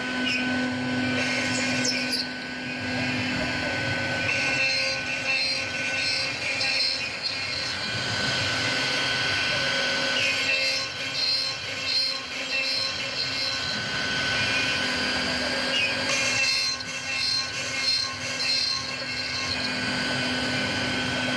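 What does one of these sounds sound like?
A machine spindle whines steadily at high speed.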